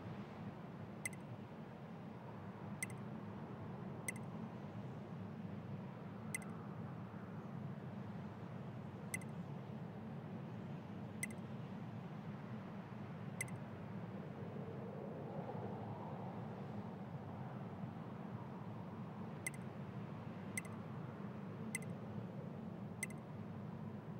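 Soft, short menu ticks sound as a selection moves up and down a list.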